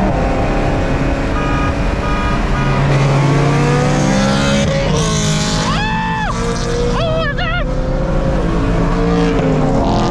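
Tyres and wind rush steadily at highway speed.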